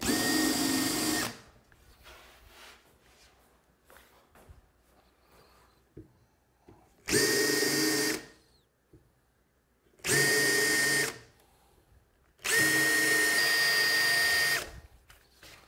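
A cordless drill whirs in short bursts, driving screws into wood.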